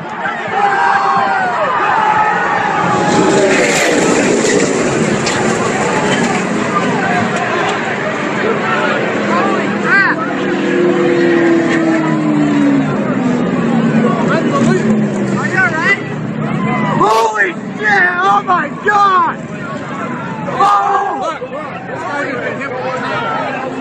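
A crowd of spectators screams and shouts in panic close by.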